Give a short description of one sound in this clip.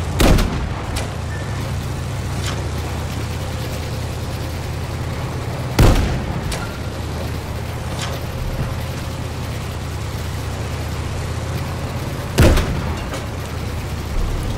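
Shells explode in water.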